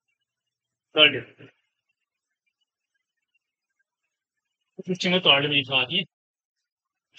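A young man speaks briefly and calmly nearby.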